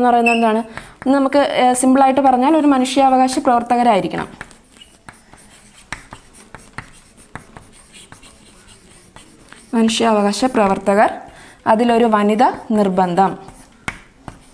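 A young woman speaks calmly and clearly, as if teaching, close to the microphone.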